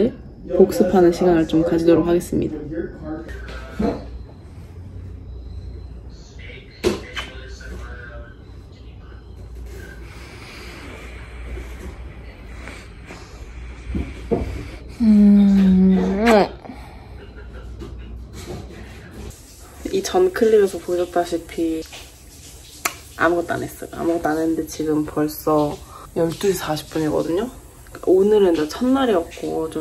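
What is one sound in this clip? A young woman talks casually and close by.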